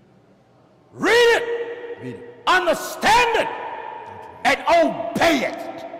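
A man cries out in long, drawn-out, sung phrases.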